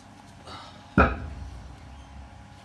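A heavy metal weight plate thuds down onto a concrete floor.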